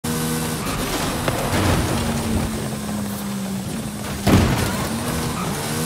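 A high-revving car engine roars, changing pitch as the gears shift.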